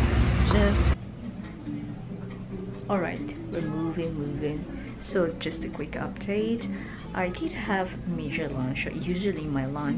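A young woman speaks calmly and close up.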